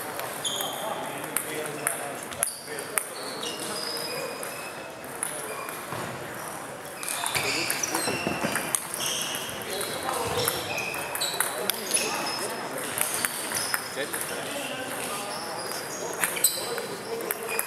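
Shoes squeak on a hall floor.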